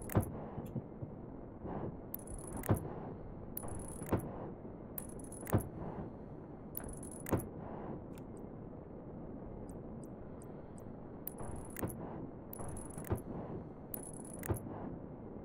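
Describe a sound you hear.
Building blocks snap into place with short, dull thuds.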